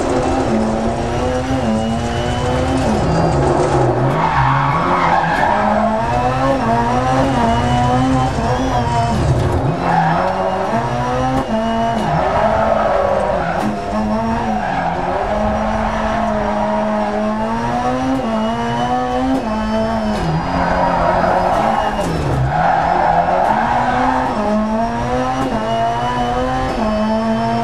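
A race car engine roars and revs up and down through the gears.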